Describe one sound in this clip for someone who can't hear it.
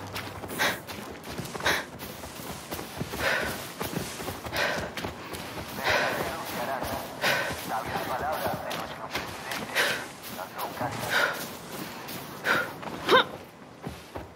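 Footsteps pad steadily through grass.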